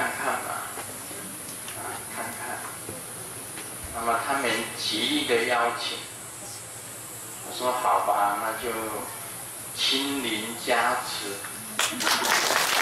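A man speaks into a microphone, heard through a loudspeaker.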